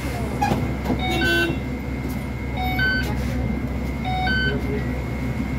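A card reader beeps as passengers tap on.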